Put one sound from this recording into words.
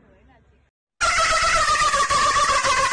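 A young man laughs loudly and shrilly.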